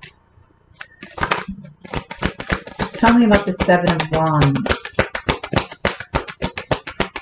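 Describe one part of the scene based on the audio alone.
Playing cards are shuffled with quick, rapid clicking.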